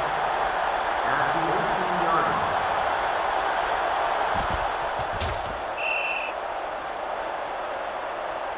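A large crowd cheers steadily in a stadium.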